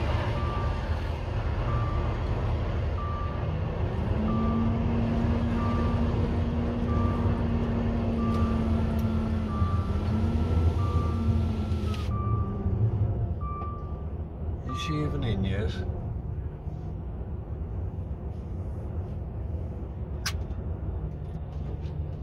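A truck engine rumbles steadily while driving slowly.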